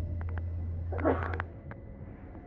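Train doors hiss and slide open.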